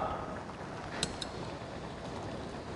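Chopped vegetables drop with a soft plop into a pot of stew.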